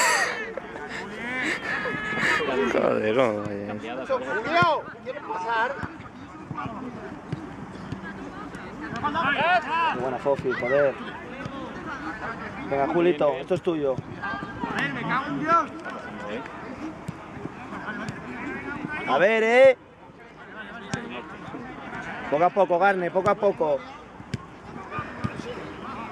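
Men shout to each other across an open football pitch outdoors.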